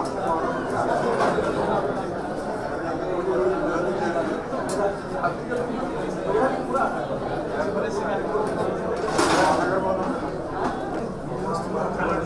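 Serving spoons clink against metal dishes.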